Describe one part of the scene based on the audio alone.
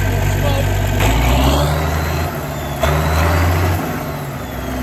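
A turbocharged diesel farm tractor revs up.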